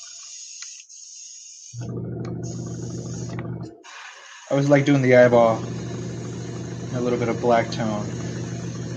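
An airbrush hisses in short spurts.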